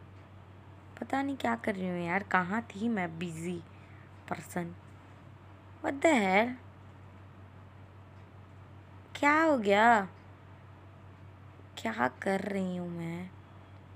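A young woman talks casually close by, in short bursts.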